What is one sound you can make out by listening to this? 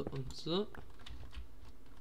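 A pickaxe chips at a block in a video game.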